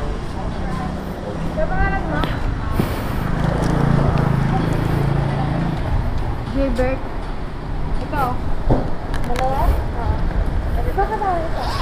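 A motorcycle engine idles with a low rumble.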